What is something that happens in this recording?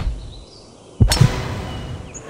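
A golf club strikes a ball with a sharp whoosh.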